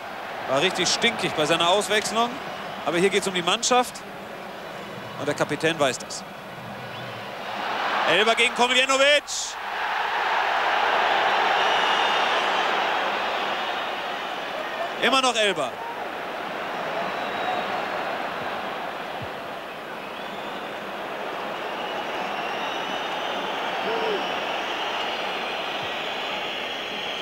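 A large stadium crowd roars and cheers, swelling loudly.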